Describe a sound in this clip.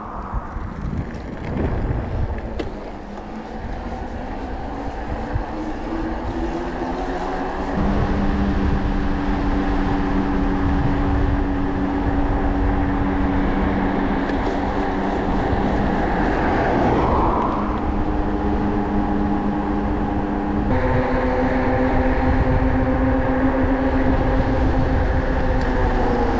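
An electric bicycle motor whines, rising in pitch and then holding steady.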